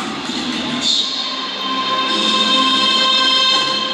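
A crowd of men and women sings together.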